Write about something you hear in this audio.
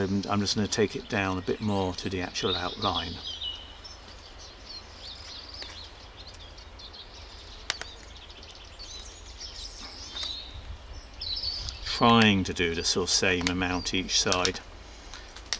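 A knife scrapes and shaves wood.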